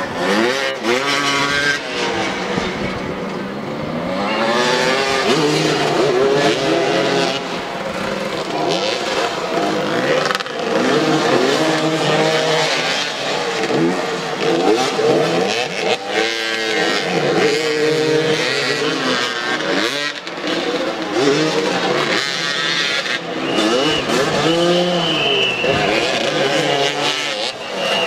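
Several motorcycle engines rev up and down and buzz close by.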